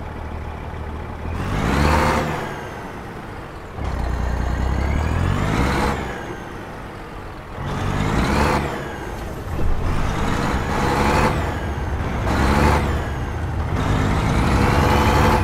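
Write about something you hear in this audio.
A heavy truck engine revs up and drops again and again as it shifts gears.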